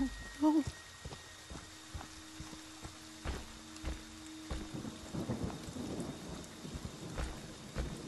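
Footsteps crunch slowly over leaves and grass.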